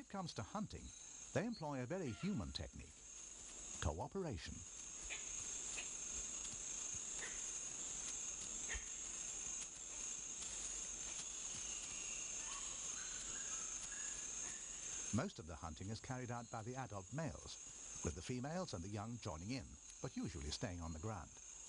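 Chimpanzees walk over rustling dry leaves.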